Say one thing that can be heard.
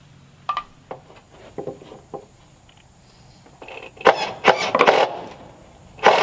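A hammer taps on wooden boards.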